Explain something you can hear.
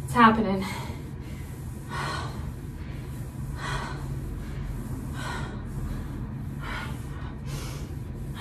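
Feet thump softly on the floor.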